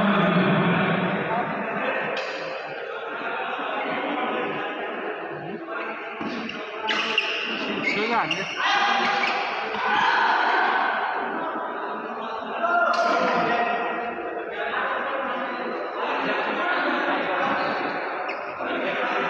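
Many voices murmur and call out in a large echoing hall.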